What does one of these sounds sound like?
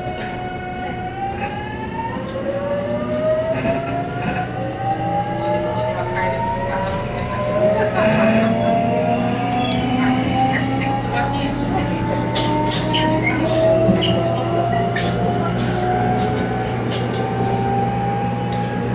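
An electric train motor whines, rising steadily in pitch as the train speeds up.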